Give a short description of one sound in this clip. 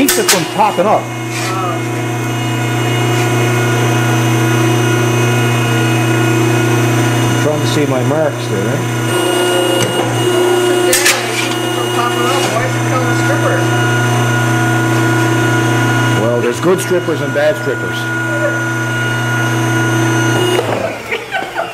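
A metal punching machine hums steadily, then stops.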